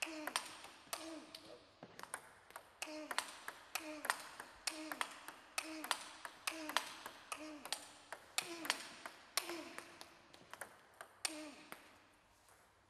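A ping pong ball clicks rapidly against paddles and a table in an echoing hall.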